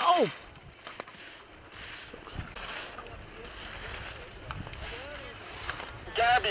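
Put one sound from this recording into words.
Skis scrape and hiss across hard snow.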